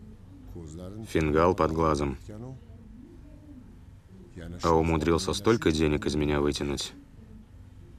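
A middle-aged man speaks seriously, close by.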